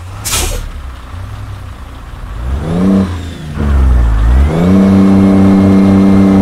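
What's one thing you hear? A heavy truck's diesel engine rumbles and revs up repeatedly, rising to a loud roar.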